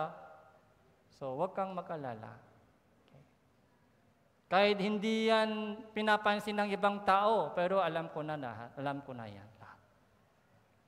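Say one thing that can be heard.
A middle-aged man speaks calmly and expressively through a headset microphone in a large hall.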